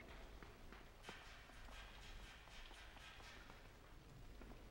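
Footsteps clank softly on a metal ladder.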